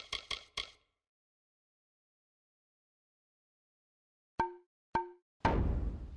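Menu chimes beep softly.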